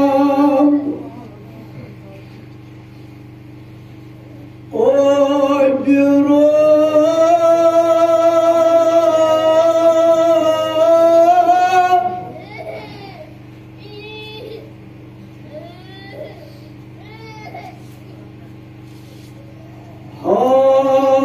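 A man sings a long, drawn-out chant loudly through a microphone in an echoing room.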